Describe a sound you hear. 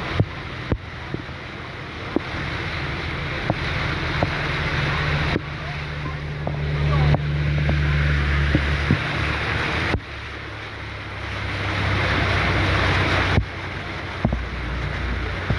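Rain drums on a car's roof and windows.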